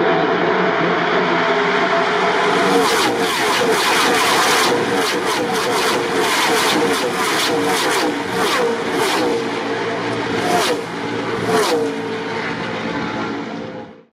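Loud race car engines roar past at high speed, one after another.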